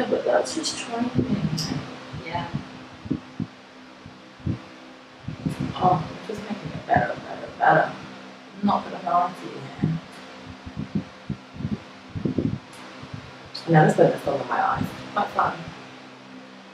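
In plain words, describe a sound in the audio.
A second young woman talks and laughs close by.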